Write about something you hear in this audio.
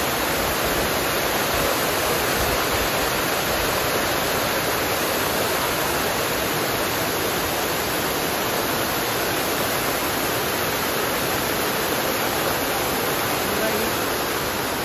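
Water jets of a fountain splash steadily into a pool.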